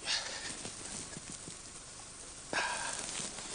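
A cloth rubs and wipes across a hard surface.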